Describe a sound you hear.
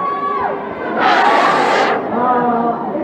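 An audience cheers and shouts loudly for a moment.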